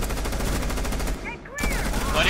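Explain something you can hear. A rifle fires in a rapid burst of loud shots.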